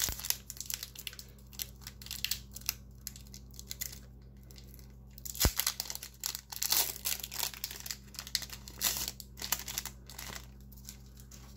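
A foil wrapper crinkles and tears as hands open it.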